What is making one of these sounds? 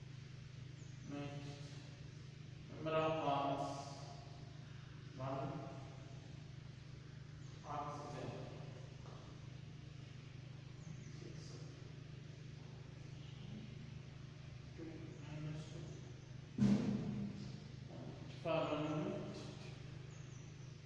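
A man speaks in short bursts with pauses, as if lecturing.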